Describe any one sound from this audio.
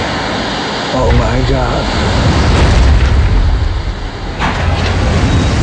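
A deep, heavy rumbling booms.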